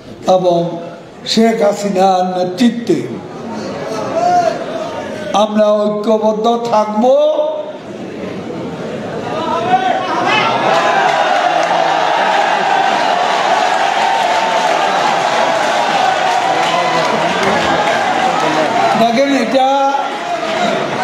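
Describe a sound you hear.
An elderly man speaks forcefully through a microphone over loudspeakers.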